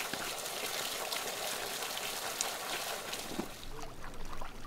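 Water pours and splashes steadily onto the ground.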